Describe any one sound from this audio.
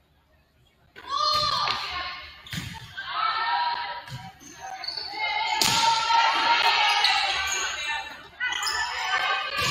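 A crowd of spectators and players cheer and shout loudly.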